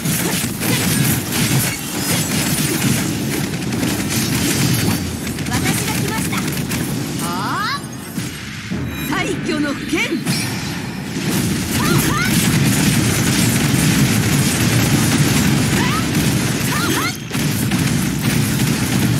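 Loud electric crackles and explosions burst again and again.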